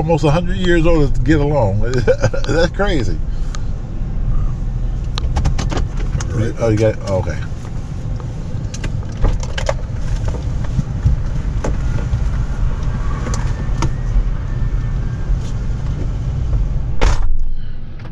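A car engine idles with a low hum.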